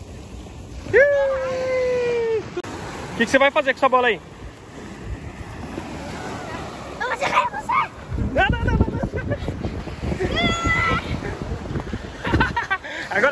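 A young boy talks and calls out excitedly close by.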